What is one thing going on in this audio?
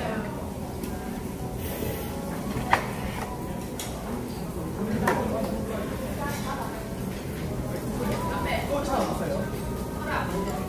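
Food sizzles on a hot grill plate.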